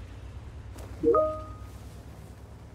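A tank crashes through stacked hay bales.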